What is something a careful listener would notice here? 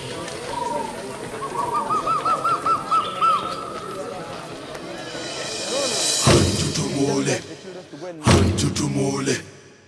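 Goats bleat in a large herd.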